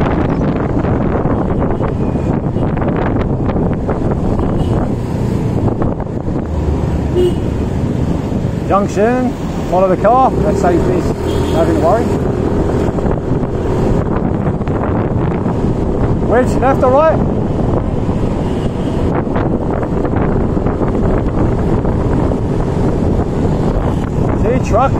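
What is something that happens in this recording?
Cars and motorbikes drive by in traffic.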